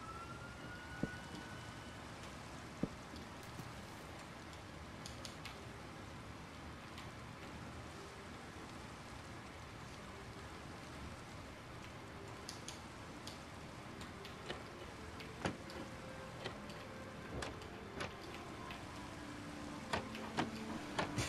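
Wooden trapdoors click as they are placed and opened.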